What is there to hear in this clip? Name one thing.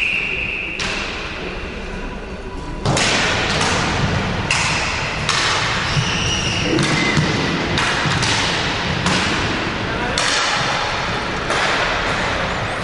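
Skate wheels roll and scrape on a hard floor in a large echoing hall.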